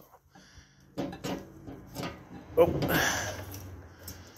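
A safe's knob turns and its latch clunks.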